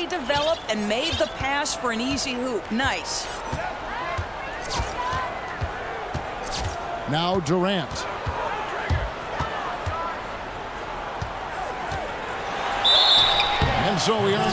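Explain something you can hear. Sneakers squeak on a court.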